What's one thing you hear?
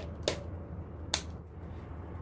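A wall switch clicks.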